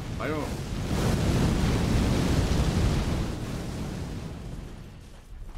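A fiery blast roars loudly and slowly dies away.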